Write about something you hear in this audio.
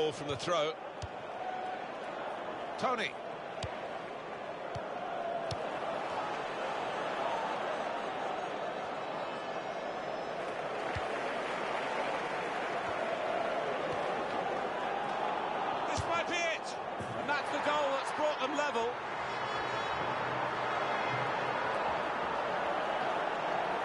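A stadium crowd roars steadily in a large open arena.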